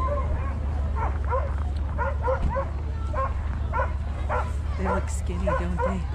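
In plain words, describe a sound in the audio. Several dogs bark and yelp excitedly in short bursts.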